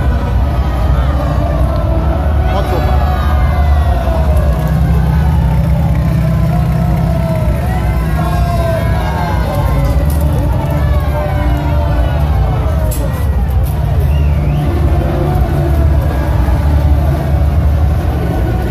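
Loud music with a heavy beat booms from loudspeakers.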